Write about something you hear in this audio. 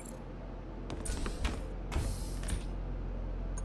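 Footsteps thump quickly across a hard floor.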